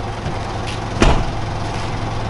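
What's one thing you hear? A car's tailgate thuds shut.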